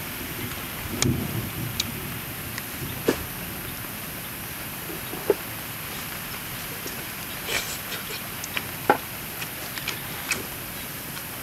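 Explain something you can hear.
Chopsticks click against a bowl.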